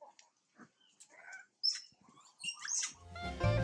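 A baby monkey squeaks and chirps in short high cries.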